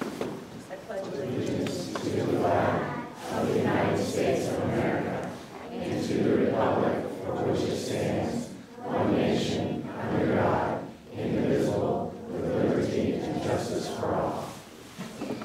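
A crowd of adults and children recites together in unison.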